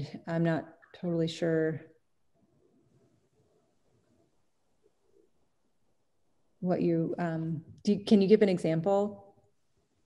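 A middle-aged woman speaks calmly over an online call, pausing between phrases.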